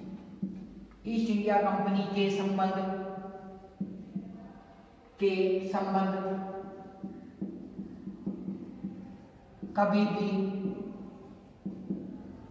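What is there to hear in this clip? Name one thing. A man speaks loudly and slowly in an echoing room.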